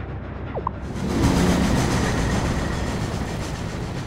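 A flying ship rushes past with a loud whoosh of wind.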